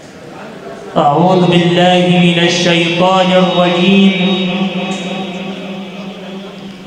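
A young man chants in a long, melodic voice through a microphone in a room with some echo.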